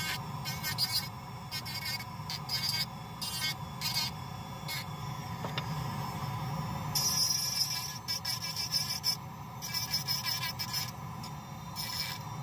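A small rotary drill whines steadily.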